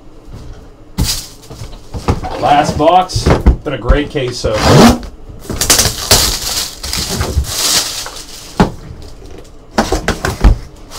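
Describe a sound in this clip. Cardboard boxes knock and scrape on a table.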